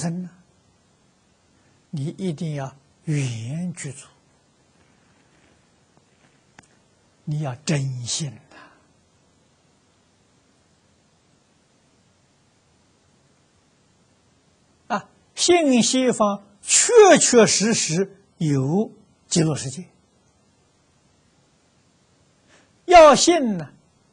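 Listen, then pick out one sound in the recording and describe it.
An elderly man speaks calmly into a close microphone, in short phrases with long pauses.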